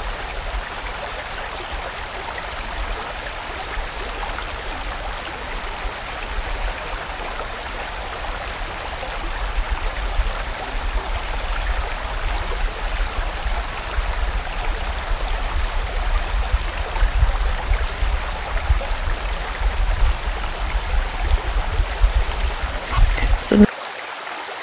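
A fast stream rushes and splashes over rocks.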